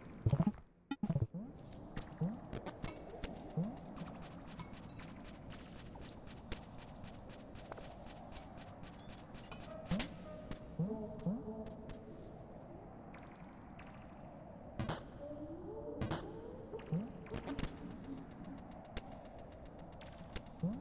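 Small game sound effects blip as a little creature hops about.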